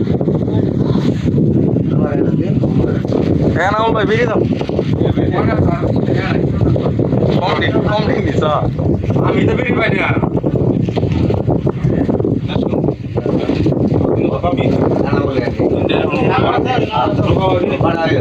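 Several men talk and shout excitedly close by.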